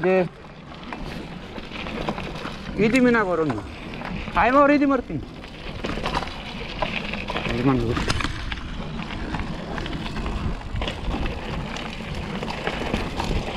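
A bicycle rattles over bumps.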